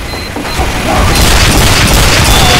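Gunfire rattles in a video game.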